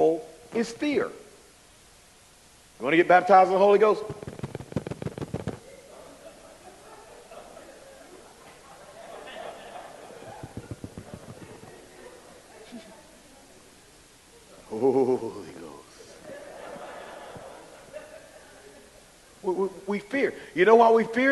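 A man speaks forcefully into a microphone, in bursts with pauses.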